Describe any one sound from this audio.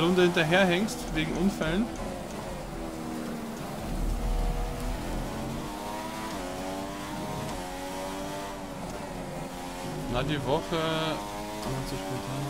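A racing car engine whines steadily, rising and falling in pitch as gears change.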